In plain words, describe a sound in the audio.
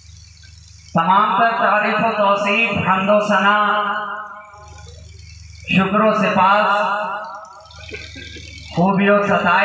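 A man sings a devotional chant loudly through a loudspeaker, in long drawn-out phrases.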